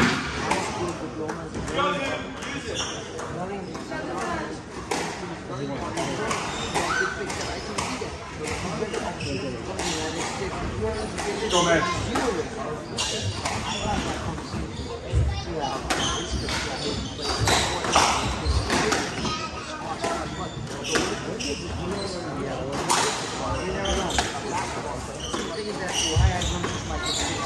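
A squash ball smacks sharply off the walls and rackets, echoing in a large hall.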